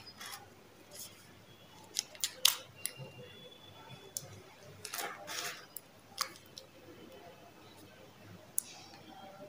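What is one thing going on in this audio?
Small plastic items click and tap as they are picked up.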